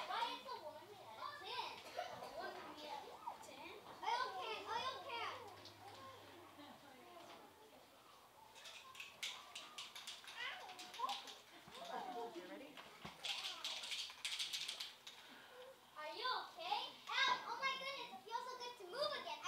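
Young children speak their lines with animation.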